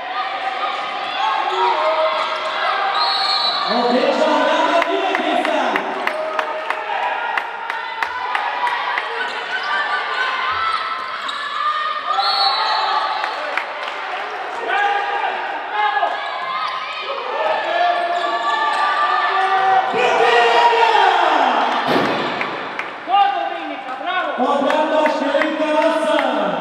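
A crowd of spectators chants and sings loudly in an echoing hall.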